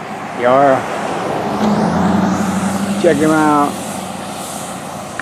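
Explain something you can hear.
A pickup truck drives past.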